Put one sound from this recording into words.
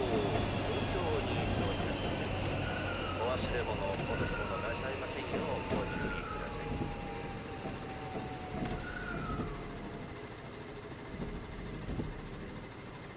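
An electric train rumbles along the rails and slows to a stop.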